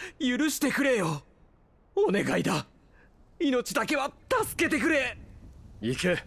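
A man speaks bitterly, close by.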